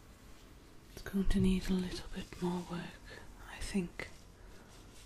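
A young woman whispers softly close by.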